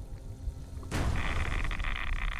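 Thick liquid bubbles and gurgles close by.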